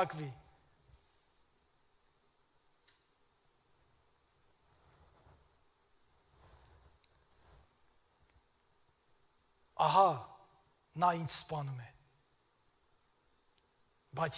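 A man speaks slowly and solemnly through a microphone in a large echoing hall, with long pauses.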